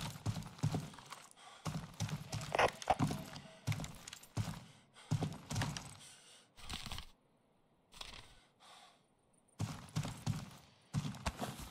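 Footsteps thud on concrete stairs.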